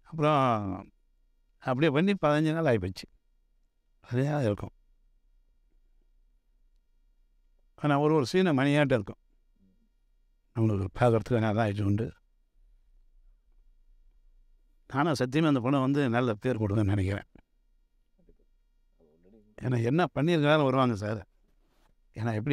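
A man speaks calmly close by, in short phrases with pauses.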